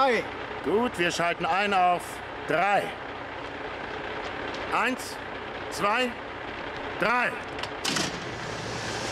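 A second man answers tensely, close by.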